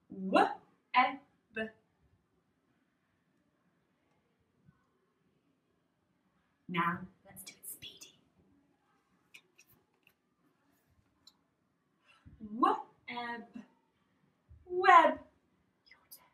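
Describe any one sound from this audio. A young woman speaks slowly and clearly close by, sounding out words in bursts with pauses.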